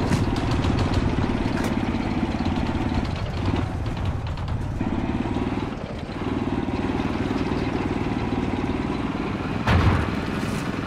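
A tank engine rumbles and clatters steadily.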